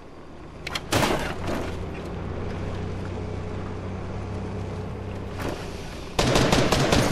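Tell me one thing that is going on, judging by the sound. A video game off-road buggy engine hums as it drives.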